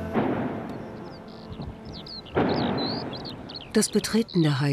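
A distant explosion booms and rumbles across open land.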